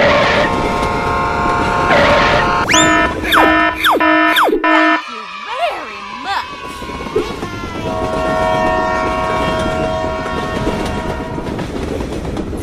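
A train whistle blows loudly several times.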